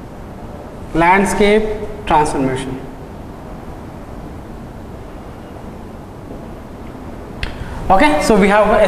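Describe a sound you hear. A man speaks calmly into a nearby microphone, in short bursts.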